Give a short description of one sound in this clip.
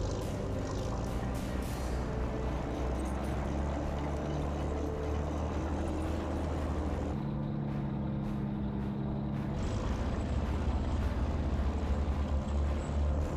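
A heavy truck engine rumbles and roars.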